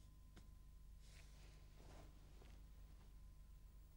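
Clothing rustles softly as a person kneels down.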